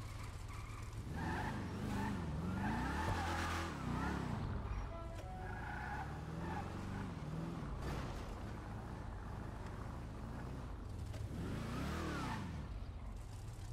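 A car engine revs up and down as the car drives and turns.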